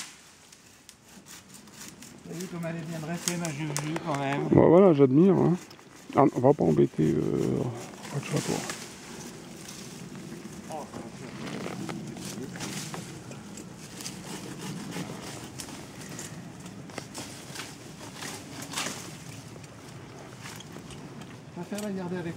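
Twigs and branches rustle and snap as horses push through undergrowth.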